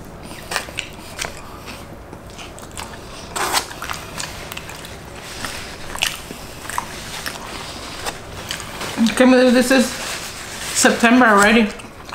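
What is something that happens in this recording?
People chew and smack their lips close by.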